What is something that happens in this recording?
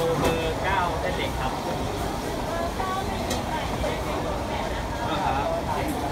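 A metal ladle clinks against bowls and containers.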